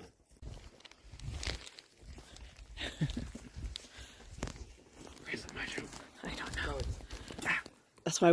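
Wind rumbles against a microphone.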